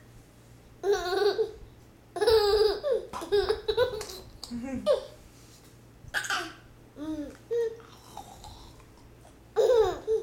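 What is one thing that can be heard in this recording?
A toddler laughs and squeals close by.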